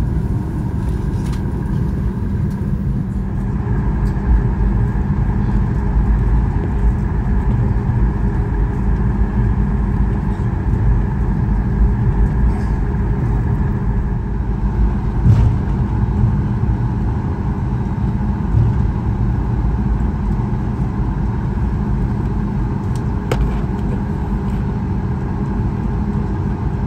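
An aircraft's wheels rumble as the plane taxis.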